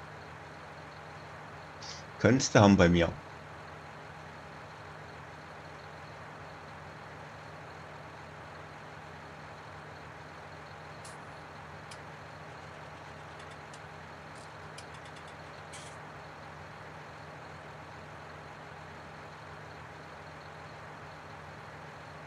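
A tractor engine idles steadily.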